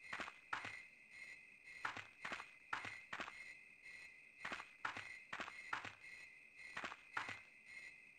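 Footsteps crunch along a dirt path at a walking pace.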